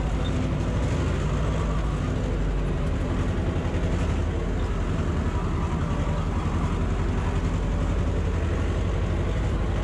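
A tractor cab rattles and shakes over rough ground.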